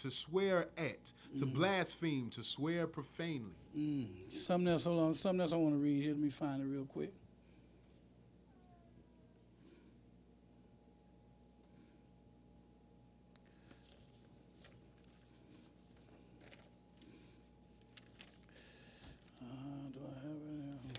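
A man reads aloud through a microphone.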